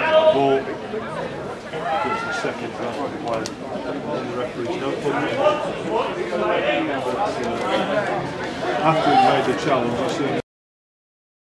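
Distant men shout across an open outdoor pitch.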